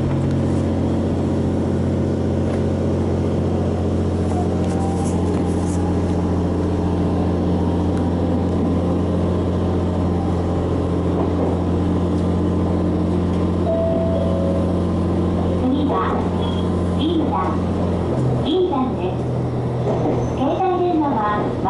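A train hums steadily and rumbles along the tracks.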